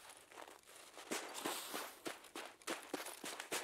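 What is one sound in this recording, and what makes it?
Branches rustle and swish as someone pushes through a fir tree.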